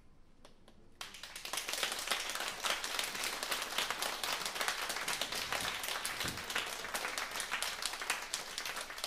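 A saxophone plays a melody.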